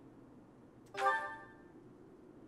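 A soft chime rings as a menu choice is confirmed.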